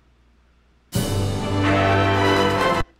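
Loud music starts suddenly.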